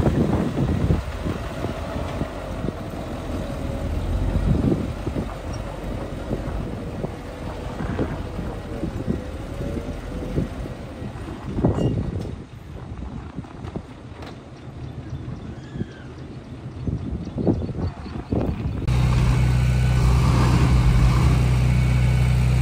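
Dirt and rocks tumble and crash from a tipping truck bed.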